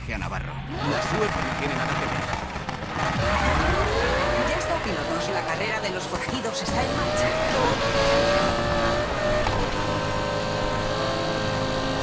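A sports car engine roars and revs as the car races at high speed.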